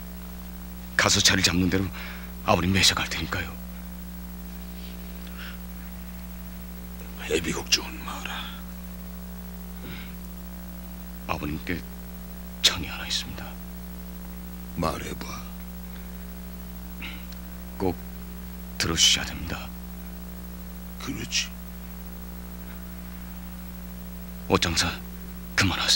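A young man speaks earnestly, close by.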